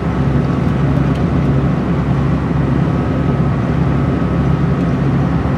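A vehicle engine hums steadily, heard from inside while driving.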